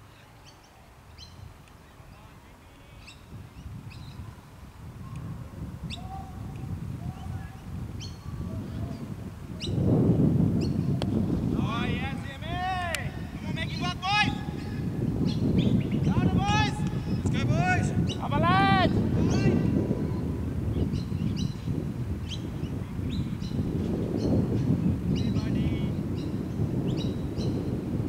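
Wind blows and rumbles outdoors, growing stronger.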